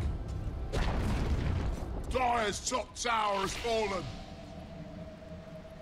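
Fantasy spell effects whoosh and crackle during a fight.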